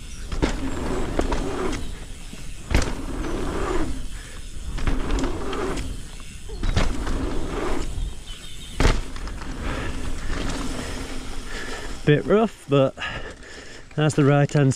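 Mountain bike tyres roll fast over packed dirt.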